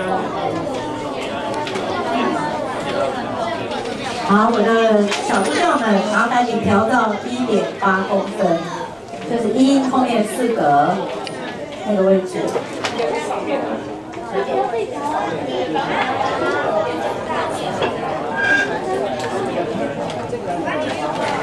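Many people chatter in the background.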